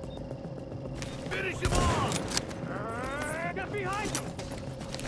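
Gunshots crack in short, loud bursts.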